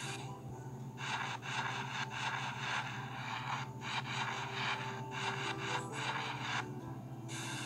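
A sponge scrubs and squelches through lather.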